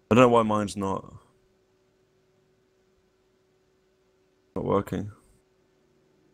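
A young man speaks briefly and casually into a nearby microphone.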